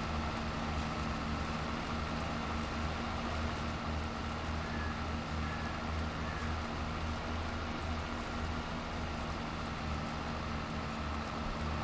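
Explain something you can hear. A tractor engine drones steadily at a low pitch.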